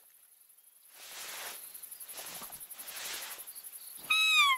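Tall grass rustles as someone pushes through it.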